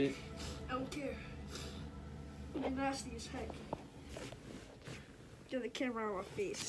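A young child talks playfully close by.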